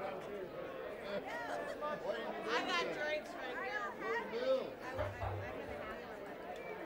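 People in an audience chatter.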